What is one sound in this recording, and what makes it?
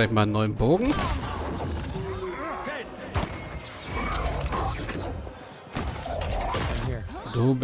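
Fiery magic bursts with a roaring whoosh.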